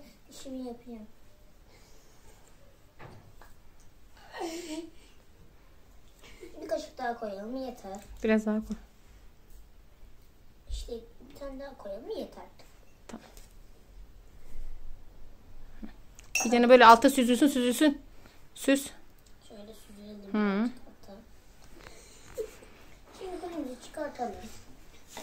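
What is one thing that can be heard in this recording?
A young boy talks in short bursts, close by.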